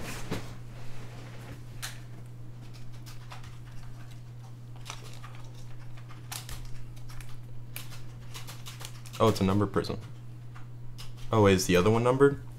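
Trading cards rustle and click as hands shuffle them.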